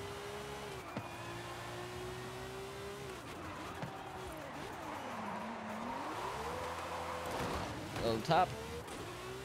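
A sports car engine roars steadily, its pitch falling and rising with the speed.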